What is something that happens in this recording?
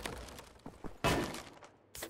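Wooden boards crack as a crate is struck.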